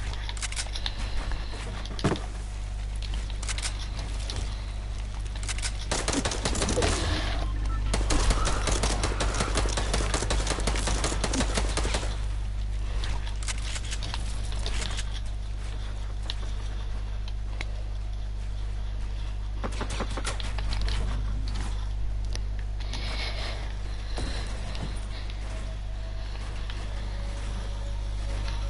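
Rapid clattering building and gunfire effects sound from a video game.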